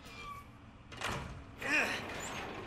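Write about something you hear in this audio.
A heavy door creaks as it is pushed open.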